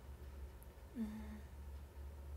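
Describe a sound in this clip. A young woman makes a brief, soft sound with her voice close by.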